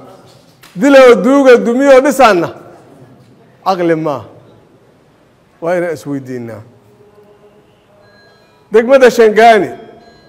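A middle-aged man speaks with animation into a clip-on microphone, in bursts with pauses.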